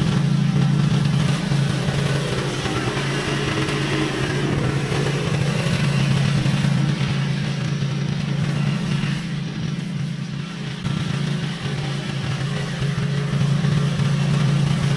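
Grass swishes under the mower's blades.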